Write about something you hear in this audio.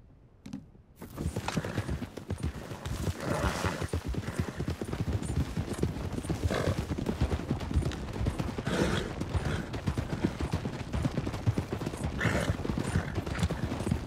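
Horse hooves thud steadily on soft ground at a gallop.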